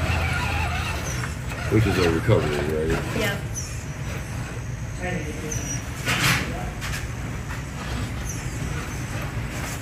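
A small electric motor whines as a toy truck crawls over rocks.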